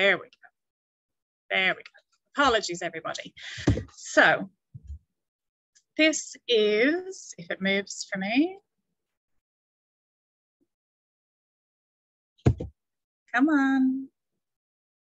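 A woman speaks calmly through an online call, with pauses.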